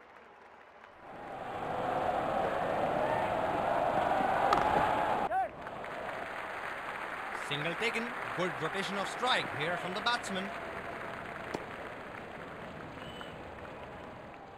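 A crowd cheers loudly in a large stadium.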